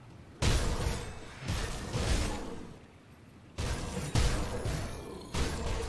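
Spell impacts burst one after another in a video game battle.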